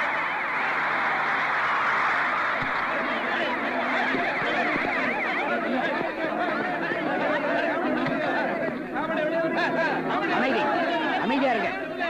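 A crowd of men and women shouts and chants loudly.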